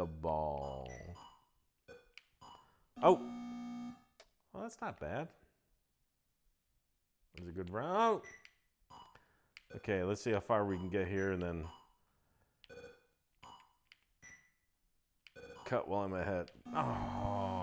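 A video game plays short electronic beeps and tones in bursts.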